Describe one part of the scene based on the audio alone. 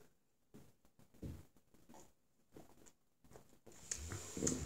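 A man gulps down a drink close by.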